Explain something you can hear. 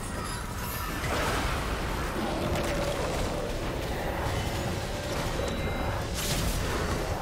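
Magic spells crackle and burst in a fight.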